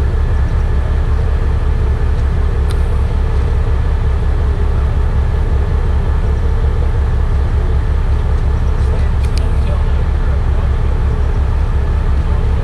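Men talk quietly at a distance.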